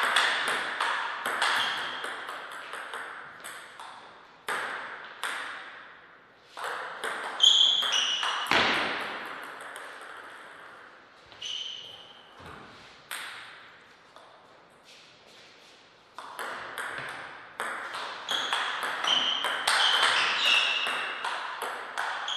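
A ping-pong ball clicks back and forth off paddles and a table in a quick rally.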